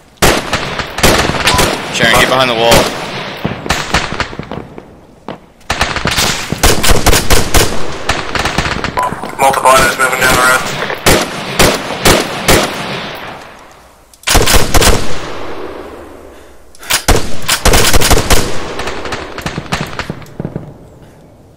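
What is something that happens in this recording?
Rapid gunfire rings out in bursts and echoes away outdoors.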